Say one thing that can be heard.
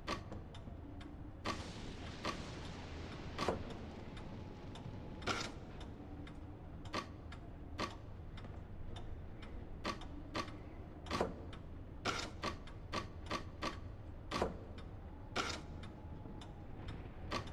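Wooden blocks slide and clack into place, over and over.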